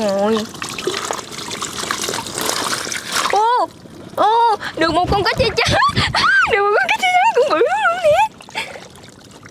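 Water splashes and drips as a wet fishing net is lifted from a pond.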